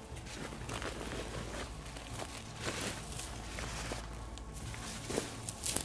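Dry stubble crunches underfoot.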